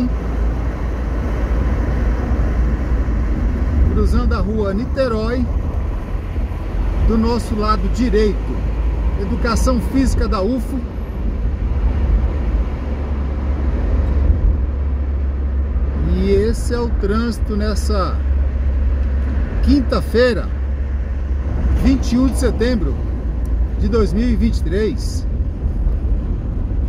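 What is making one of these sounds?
Road noise hums from inside a moving car.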